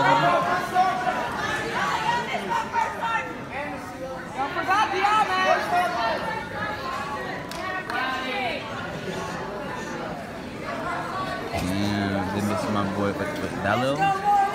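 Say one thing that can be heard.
A crowd of young people murmurs and chatters nearby.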